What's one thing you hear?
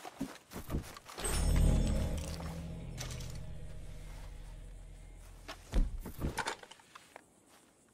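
Footsteps crunch over dry grass.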